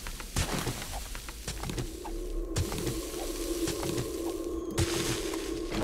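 Chunks of rock crumble and tumble down.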